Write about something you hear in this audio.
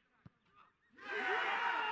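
Men shout and cheer loudly.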